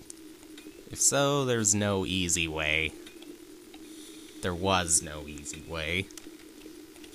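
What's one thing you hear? Short video game sound effects chime and sweep up and down.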